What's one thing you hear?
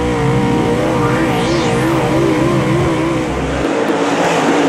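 A race car engine roars up close, its pitch wavering as it revs.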